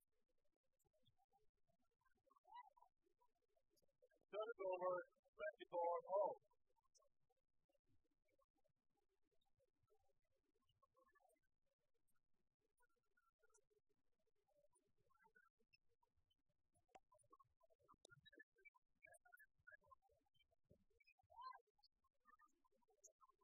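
Rackets strike a shuttlecock with sharp pops.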